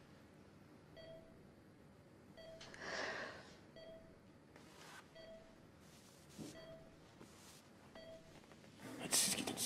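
A heart monitor beeps steadily.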